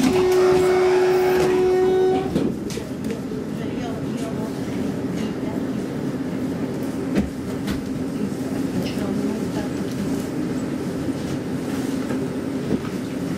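A tram rumbles steadily along its tracks, heard from inside.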